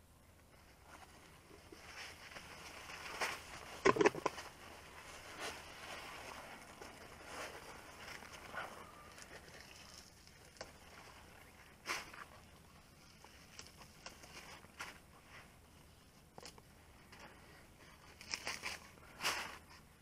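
Leaves rustle and stems snap as hands pick through plants.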